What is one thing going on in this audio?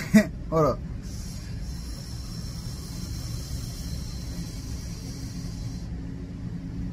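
A man draws a long, hissing breath through a vape.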